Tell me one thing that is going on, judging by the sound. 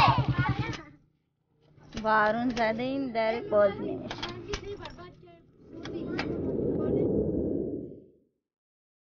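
Children and women chatter nearby.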